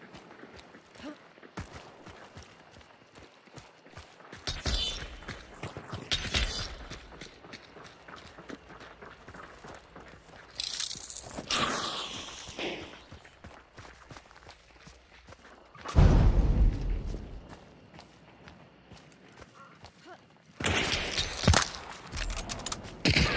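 Footsteps crunch over dirt and dry grass.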